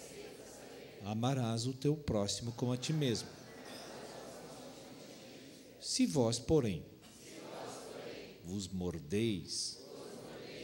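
A middle-aged man preaches with emphasis through a handheld microphone.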